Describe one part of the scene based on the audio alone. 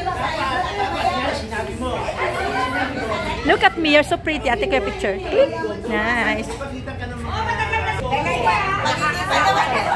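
A crowd of adults chatters and laughs nearby.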